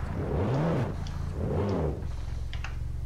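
A car engine revs up and down loudly.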